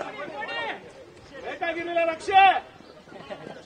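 Young men cheer and shout outdoors in celebration.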